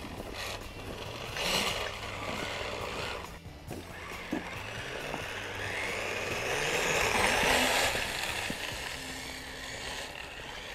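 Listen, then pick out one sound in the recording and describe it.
A small toy car's electric motor whines as it drives over snow.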